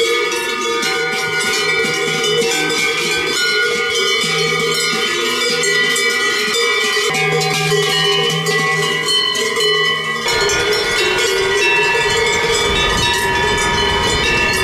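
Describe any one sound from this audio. Cowbells clang and jingle as cows walk.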